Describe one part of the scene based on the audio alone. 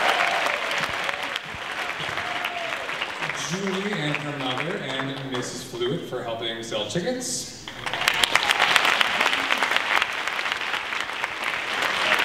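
A crowd of young people cheers and claps.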